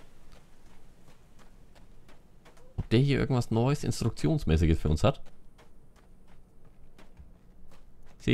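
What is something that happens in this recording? Footsteps crunch steadily on dry dirt.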